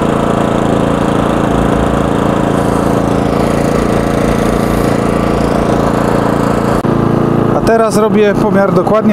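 A small generator engine runs with a steady, droning hum close by.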